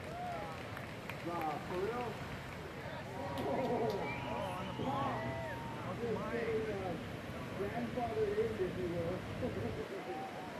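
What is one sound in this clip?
Large ocean waves crash and roar.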